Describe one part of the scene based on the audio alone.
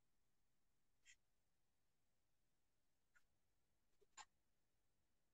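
A pen scratches and taps on a sheet of paper.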